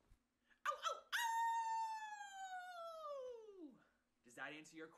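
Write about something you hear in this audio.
A young man howls long and loud, the howl falling in pitch.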